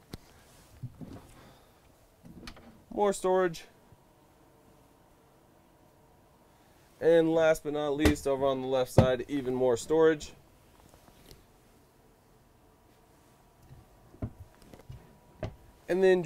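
Cabinet doors click open and shut.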